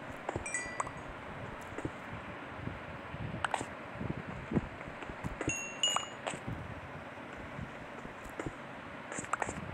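A pickaxe chips at stone blocks with short dry knocks.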